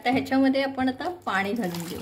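Water pours into a pan of sauce.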